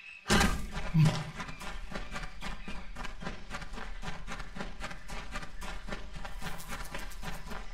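Footsteps run quickly through rustling grass.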